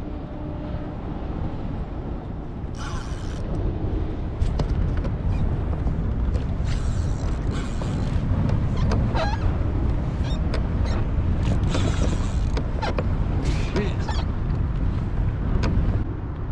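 Small waves lap against a boat.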